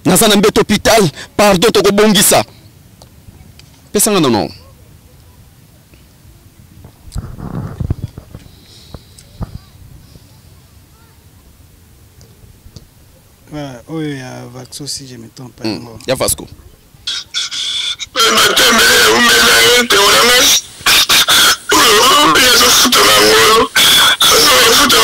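A man speaks into a microphone close up, with animation.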